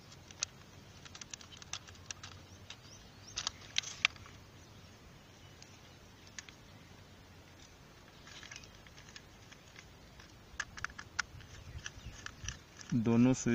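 Small plastic parts and wires tap and click as hands handle them.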